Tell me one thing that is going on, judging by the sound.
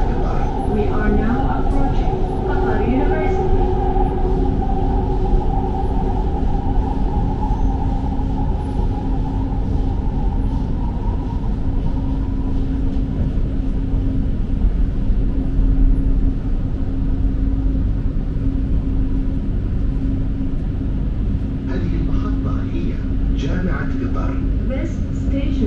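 A train hums and rumbles steadily along an elevated track.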